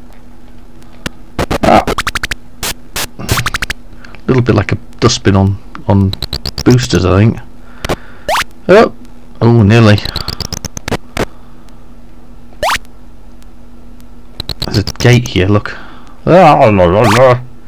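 Sharp electronic zaps from a retro game fire in quick bursts.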